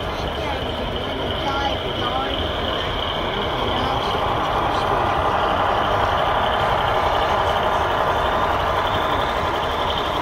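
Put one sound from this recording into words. A model train hums and rattles along its track close by.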